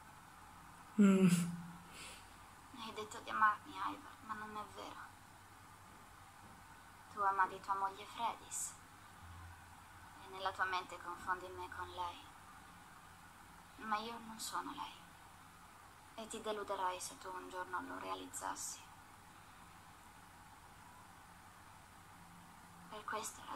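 A young woman speaks calmly in bursts, heard over an online call.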